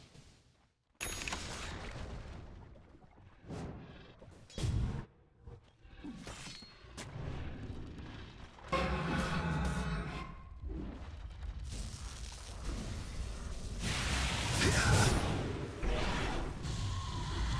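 Fantasy battle sounds of magic spells whoosh and crackle in bursts.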